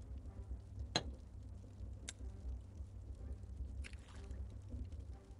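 A blade cuts into soft clay with short thuds.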